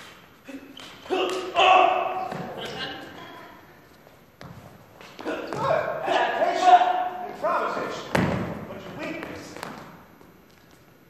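Actors speak loudly at a distance in a large echoing hall.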